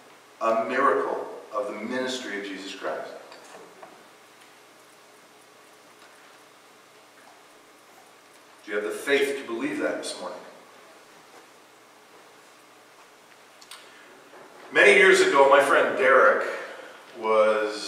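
A man speaks calmly to an audience through a microphone, in a room with some echo.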